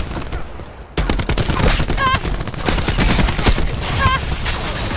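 An automatic rifle fires rapid bursts.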